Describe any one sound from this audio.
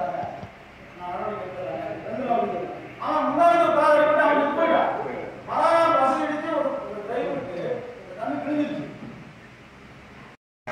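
A man speaks loudly and with animation in a large echoing hall.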